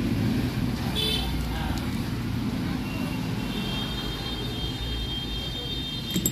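Small metal parts click softly as they are handled and set down on a rubber mat.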